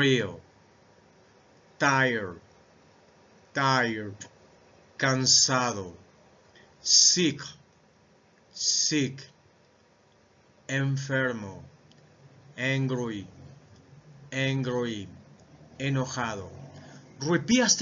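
A middle-aged man speaks into a microphone in short, clear phrases, pausing between each word like a teacher reading out a list.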